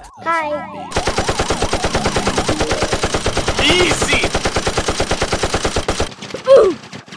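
Rapid popping shots fire in a fast, even stream.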